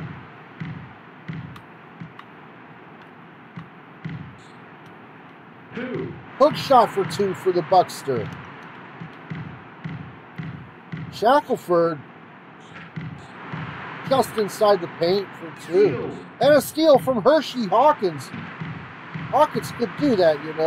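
A basketball bounces steadily on a court.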